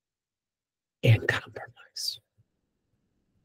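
An older man speaks briefly and calmly over an online call.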